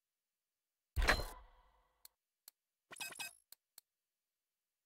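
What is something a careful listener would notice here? Video game menu sounds click and chime.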